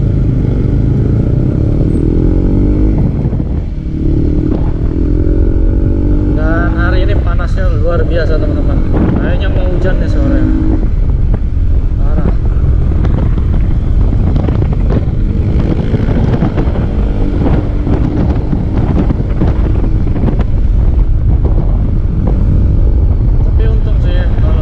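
A motorcycle engine hums steadily up close and changes pitch as it speeds up and slows.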